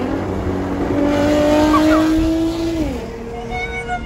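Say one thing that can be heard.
A sports car engine revs up loudly nearby.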